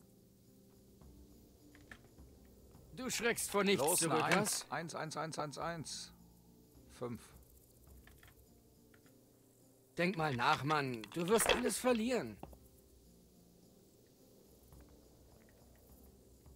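Dice clatter and tumble across a wooden table.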